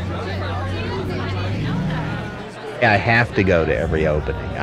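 A crowd of people chats and murmurs indoors.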